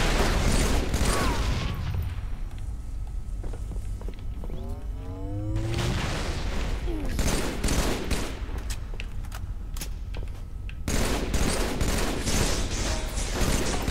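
A rifle fires rapid shots.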